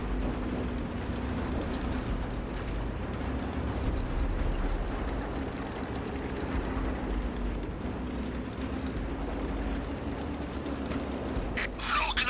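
A light tank's engine rumbles as it drives.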